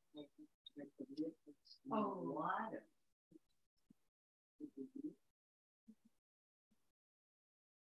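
A woman speaks calmly over an online call, in short phrases.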